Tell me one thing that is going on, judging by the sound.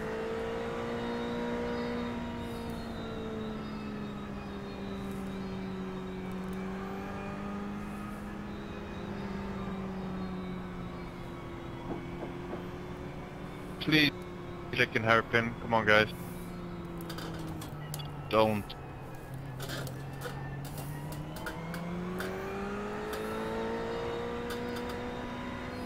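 A racing car engine drones steadily, its pitch slowly dropping and then rising again near the end.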